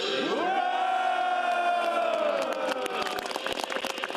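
A group of men sing loudly together outdoors.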